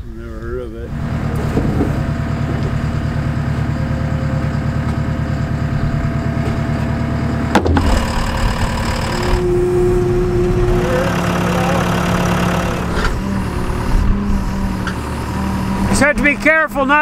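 A diesel engine rumbles steadily.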